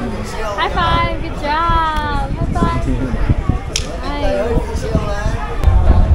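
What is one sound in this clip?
A young girl talks in a high voice close by.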